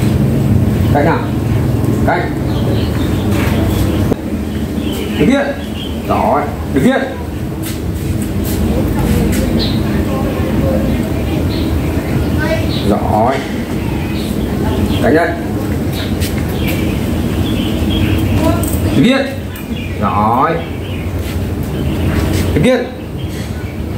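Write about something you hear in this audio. A man gives short commands to a dog nearby.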